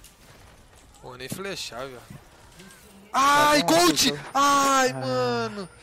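A young man speaks into a microphone, loud and animated, shouting at times.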